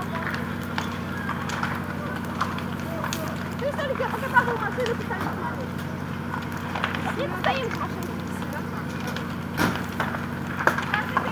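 Water hisses from a fire hose.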